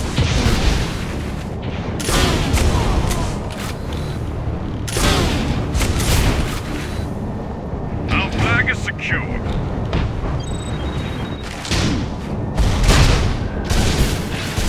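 A gun fires blasts that boom and crack.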